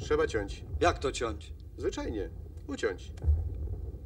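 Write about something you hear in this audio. A man speaks briskly, close by.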